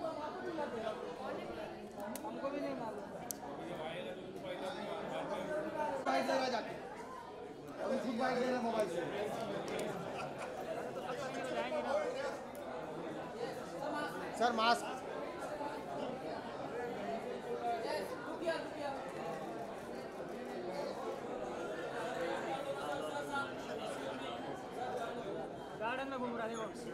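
A crowd of men and women chatters close by.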